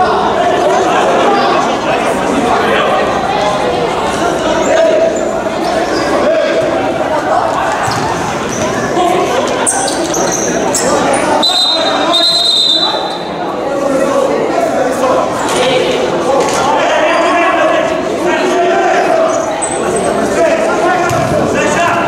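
A crowd cheers and chants loudly in a large echoing hall.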